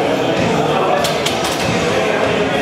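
A loaded barbell clanks back onto its rack.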